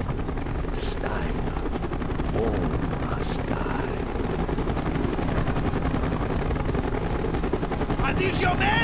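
A man talks into a microphone close by.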